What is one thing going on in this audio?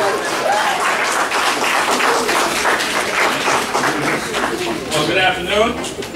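A large crowd of children chatters.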